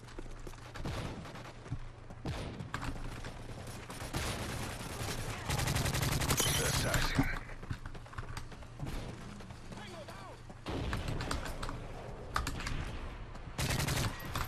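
Gunfire from a video game rattles in rapid bursts.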